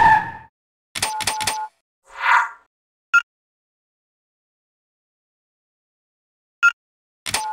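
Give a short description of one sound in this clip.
Short electronic menu blips sound several times.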